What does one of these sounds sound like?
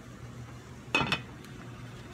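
A metal pot lid clinks.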